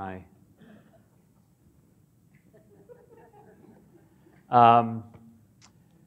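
A middle-aged man speaks into a microphone in a large, echoing hall.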